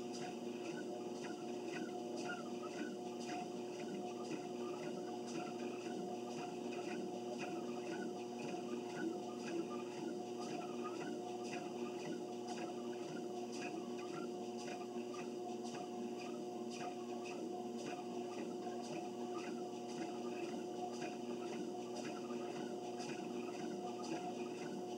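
A treadmill motor hums steadily.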